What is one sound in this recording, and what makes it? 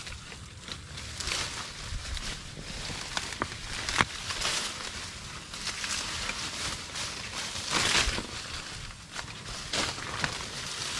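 Dry leaves rustle and crackle as a person moves through them.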